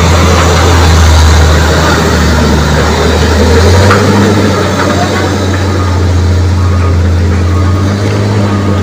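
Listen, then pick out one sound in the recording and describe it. A heavy truck engine rumbles low as the truck turns slowly.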